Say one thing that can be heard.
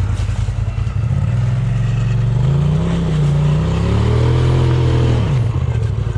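An off-road vehicle's engine rumbles and revs up nearby.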